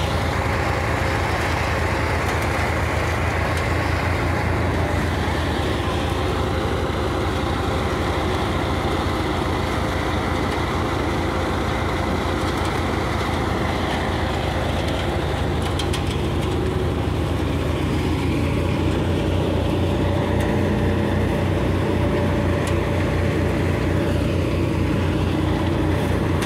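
A tractor-powered paddy thresher hums, threshing rice straw.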